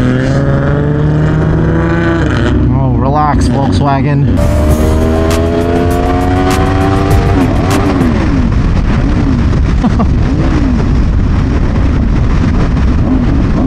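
A motorcycle engine revs hard and climbs in pitch through the gears.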